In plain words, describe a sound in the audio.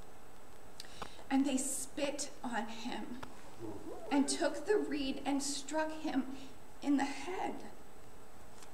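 A young woman reads aloud from a book.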